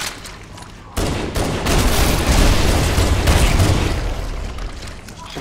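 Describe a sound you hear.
Grenades explode with a loud boom.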